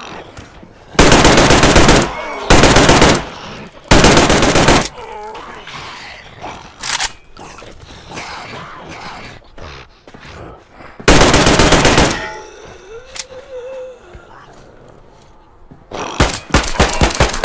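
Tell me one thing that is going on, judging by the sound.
A rifle fires loud rapid bursts of shots.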